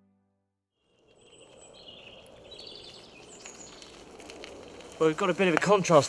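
A bicycle rolls along a dirt path.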